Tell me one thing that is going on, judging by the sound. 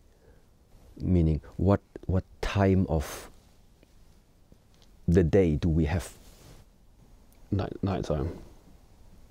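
A man speaks calmly and closely, with pauses.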